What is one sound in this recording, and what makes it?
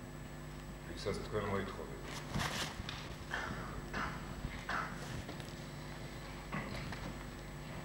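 An older man answers in a low voice.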